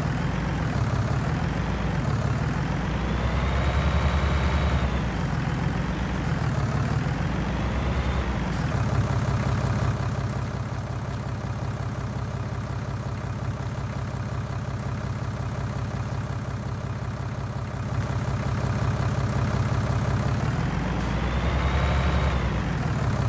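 A tractor engine rumbles and revs up and down as the tractor drives.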